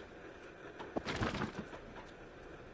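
A cat lands with a soft thud on a wooden shelf.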